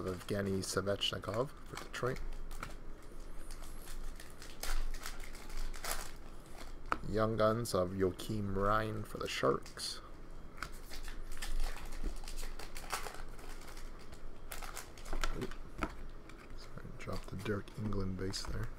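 Trading cards flick and rustle in hands.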